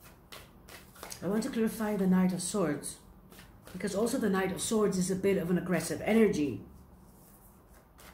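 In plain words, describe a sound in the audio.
Cards rustle and tap as a woman shuffles them.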